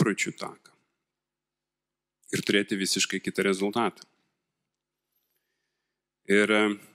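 A man speaks calmly into a microphone, heard through loudspeakers, with pauses.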